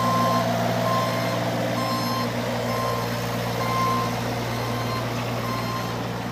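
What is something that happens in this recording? A mini excavator's diesel engine runs with a steady low rumble.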